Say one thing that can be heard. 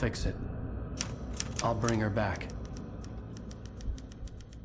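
Typewriter keys clack one after another.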